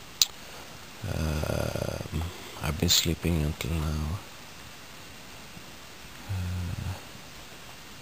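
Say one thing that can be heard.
A man speaks slowly and close by, in a low voice.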